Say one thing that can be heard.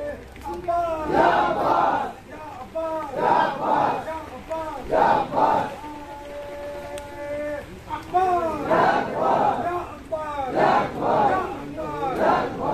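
Men beat their chests with their hands in a steady rhythm.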